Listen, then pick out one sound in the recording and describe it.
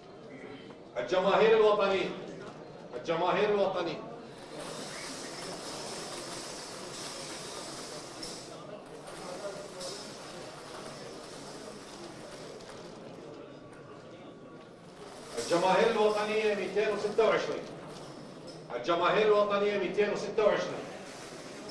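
A man reads out announcements into a microphone, in short bursts.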